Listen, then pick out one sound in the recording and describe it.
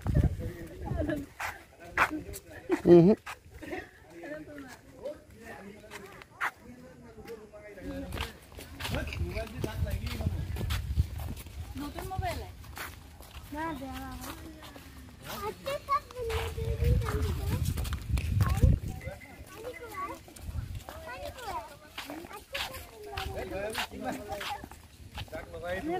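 Women talk and call out nearby outdoors.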